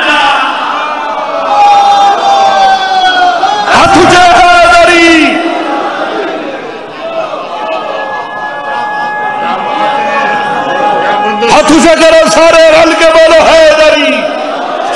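A man recites in a loud, wailing chant through a microphone, echoing in a hall.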